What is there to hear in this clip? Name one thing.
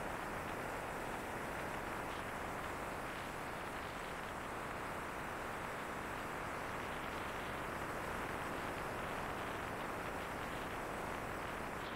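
Wind rushes loudly and steadily past a fast-moving motorcycle.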